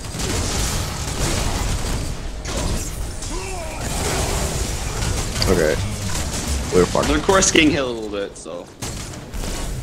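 Energy weapons fire rapidly and blasts crash in a fierce fight.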